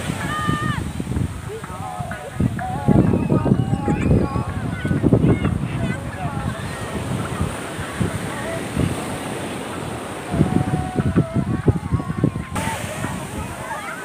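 Many people chatter and shout nearby.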